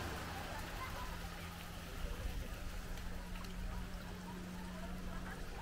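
Wind blows outdoors and rustles palm leaves.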